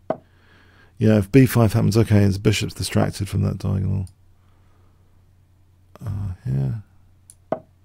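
An older man talks with animation, close to a microphone.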